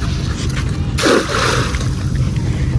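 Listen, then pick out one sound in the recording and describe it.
A cast net splashes onto the water.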